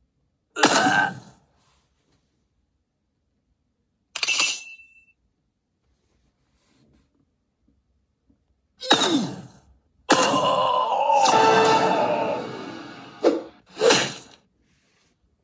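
Short video game sound effects and jingles play in bursts.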